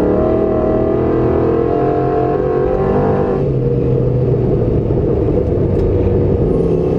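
Tyres rumble over loose gravel.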